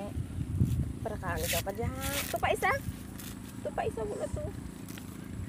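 A young child speaks nearby.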